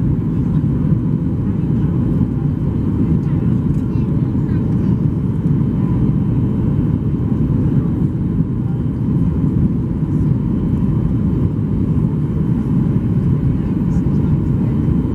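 Jet engines roar steadily from inside an airliner cabin.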